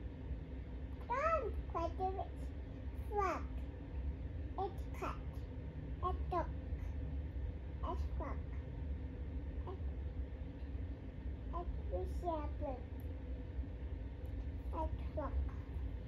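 A toddler babbles and coos softly nearby.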